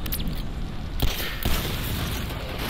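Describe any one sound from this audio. Two gunshots ring out in quick succession.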